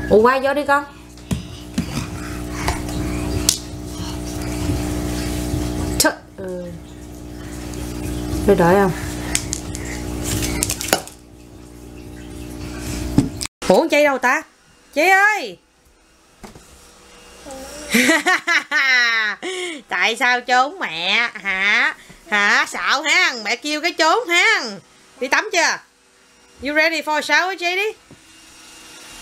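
A baby babbles and squeals nearby.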